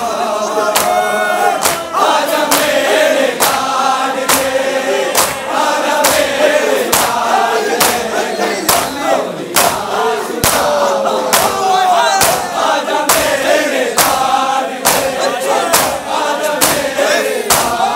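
A large crowd of men beats their chests in a steady, loud rhythm.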